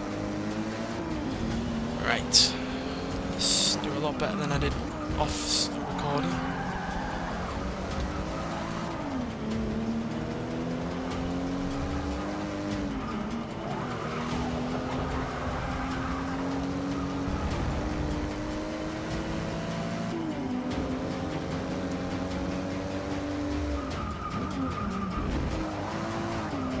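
A car engine revs hard and shifts up and down through the gears.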